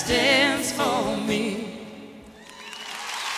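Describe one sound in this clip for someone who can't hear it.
A woman sings with vibrato into a microphone in a large hall.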